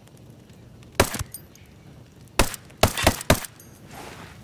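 A rifle fires several loud shots in quick succession.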